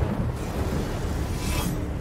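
A jet of flame roars loudly.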